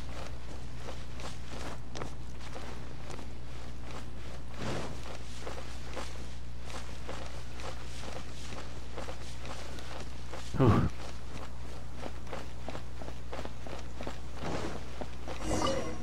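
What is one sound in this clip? Quick footsteps patter over grass and then stone.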